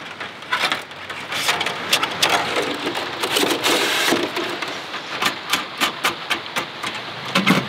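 Thin metal panels clink and rattle as they are handled and fitted together.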